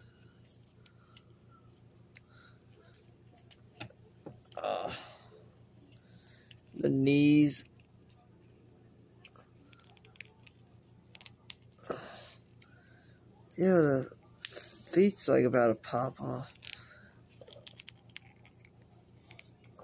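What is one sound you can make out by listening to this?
A plastic toy figure clicks and rustles as it is handled.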